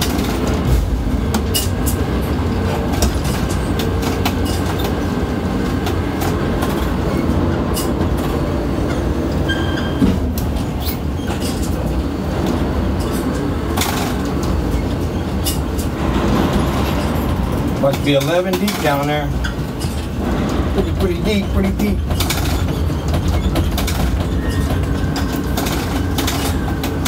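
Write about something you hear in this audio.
A crane's machinery rumbles steadily.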